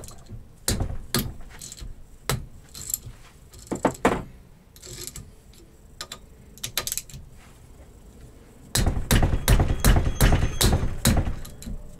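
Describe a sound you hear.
Metal parts clink and knock together.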